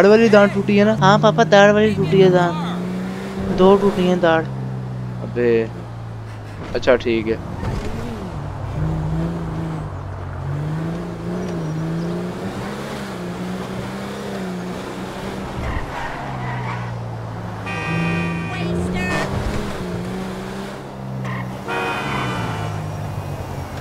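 A car engine hums steadily and rises and falls in pitch as the car drives.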